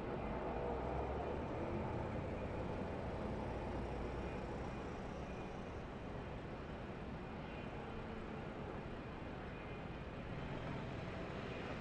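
Racing trucks' engines rumble steadily as they circle slowly.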